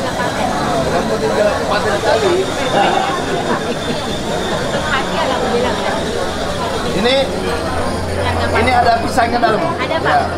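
A crowd of people chatters all around.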